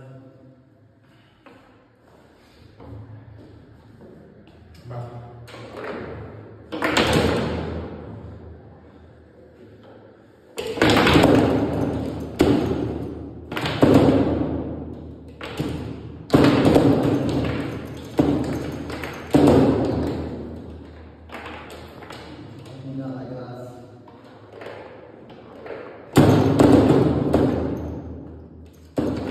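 Foosball rods clatter as players spin and slide them.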